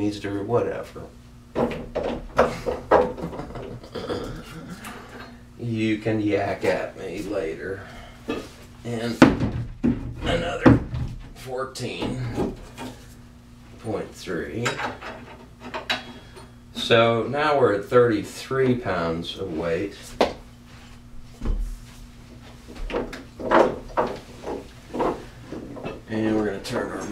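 A middle-aged man talks calmly nearby, explaining.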